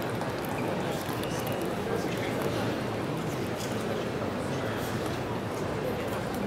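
A ping pong ball bounces on a table.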